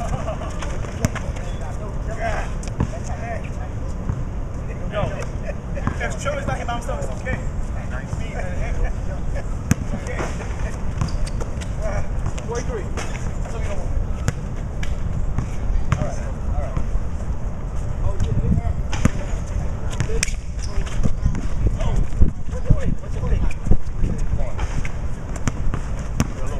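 Men talk and call out outdoors.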